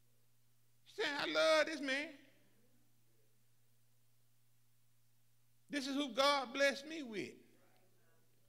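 An elderly man speaks into a microphone in short, forceful bursts with pauses between them.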